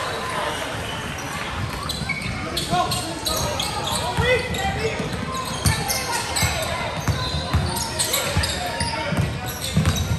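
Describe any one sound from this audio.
A basketball bounces on a hard court with a booming echo.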